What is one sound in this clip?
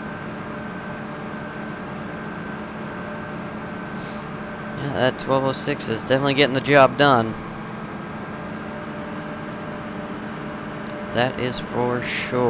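A combine harvester engine hums steadily.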